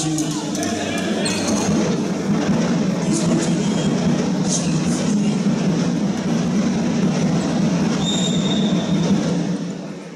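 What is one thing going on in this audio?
A ball bounces on the floor.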